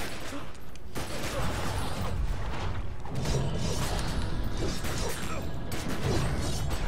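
Blows and blades strike repeatedly in a close fight.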